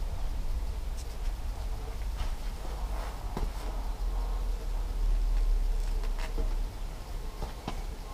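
A tyre thumps and knocks against metal poles.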